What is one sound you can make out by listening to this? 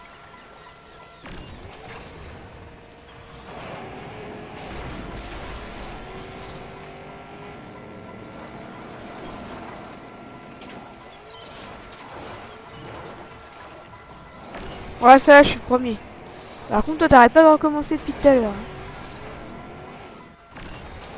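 Buggy engines whine and rev as the cars race.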